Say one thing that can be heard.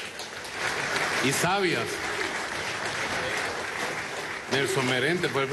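A crowd cheers and claps.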